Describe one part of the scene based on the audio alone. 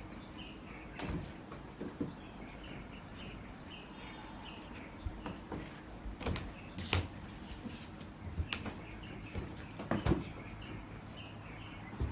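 Footsteps walk across a wooden floor, coming closer.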